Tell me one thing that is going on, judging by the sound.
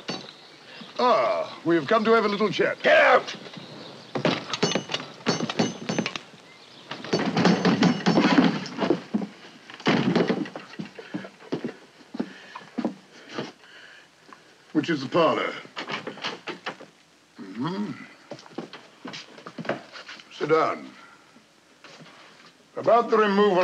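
A man speaks in a lively, theatrical voice.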